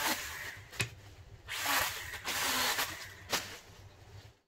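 Pruning shears snip through small branches.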